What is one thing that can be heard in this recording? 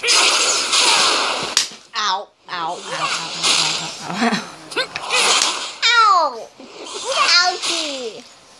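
Battle effects whoosh and crash in quick bursts.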